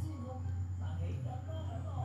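A spoon scrapes softly against a bowl.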